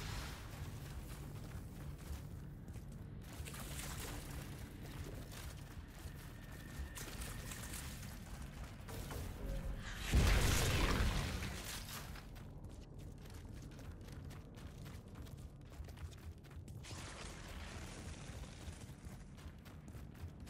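Footsteps crunch on snow as a figure runs.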